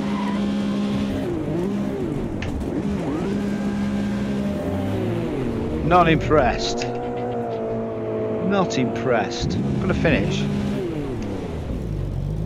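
A racing car engine roars, rising and falling in pitch as it shifts gears.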